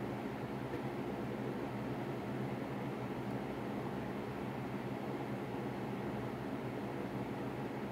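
A soldering iron sizzles softly against a circuit board.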